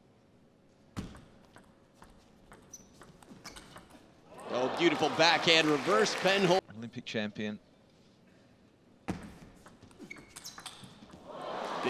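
A ping pong ball clicks back and forth between paddles and the table in a fast rally.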